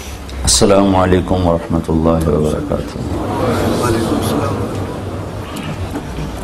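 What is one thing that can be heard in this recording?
An elderly man speaks with feeling into a microphone, heard through a loudspeaker in an echoing hall.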